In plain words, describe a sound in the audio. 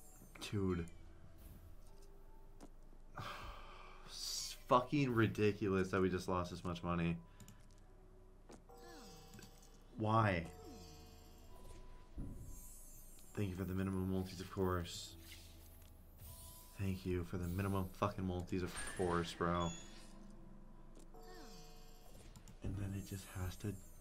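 Electronic slot machine chimes and jingles play.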